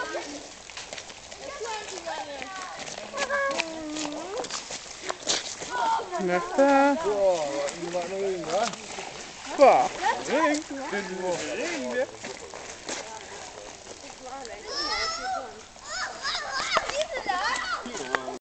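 Children talk and shout excitedly nearby.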